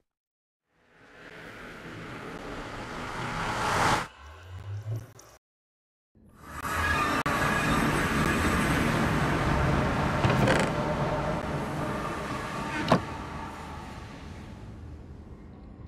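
A magic portal whooshes with a rising, roaring hiss.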